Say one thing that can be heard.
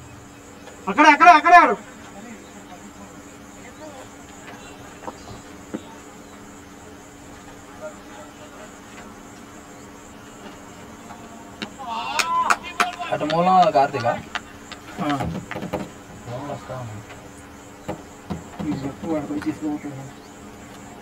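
Young men shout to each other across an open field, heard from a distance.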